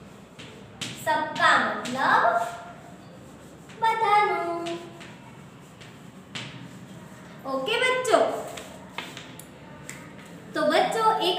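A young woman speaks clearly and steadily, close by.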